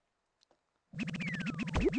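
A cheerful electronic game tune starts playing.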